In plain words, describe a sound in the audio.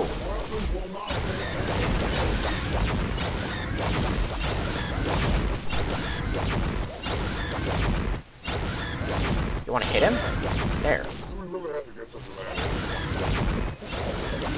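Rapid gunfire crackles and pops in a skirmish.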